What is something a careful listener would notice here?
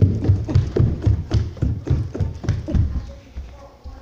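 Footsteps thump quickly down wooden stairs.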